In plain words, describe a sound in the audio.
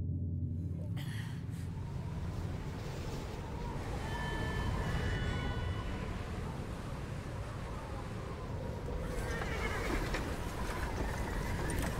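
Wind blows hard outdoors in a snowstorm.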